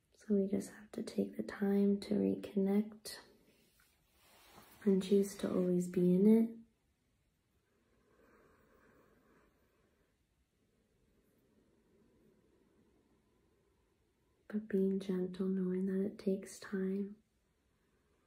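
A young woman talks calmly and close to the microphone, pausing between phrases.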